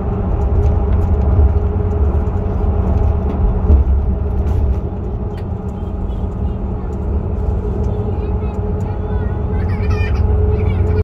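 Tyres roll on the road with a steady roar.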